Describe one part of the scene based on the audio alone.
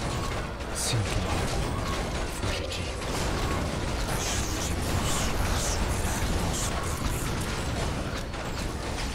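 Spells crackle and explode in a noisy fantasy battle.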